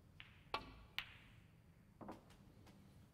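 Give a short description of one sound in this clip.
Snooker balls click against each other on the table.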